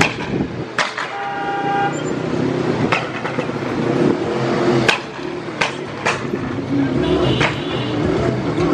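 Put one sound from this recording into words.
A vehicle horn honks.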